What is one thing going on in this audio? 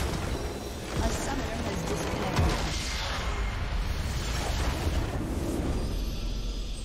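A crystal structure bursts with a deep booming rumble.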